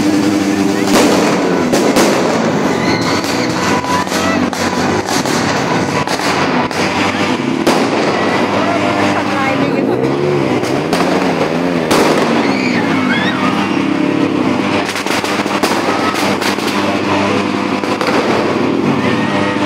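Fireworks bang and crackle nearby.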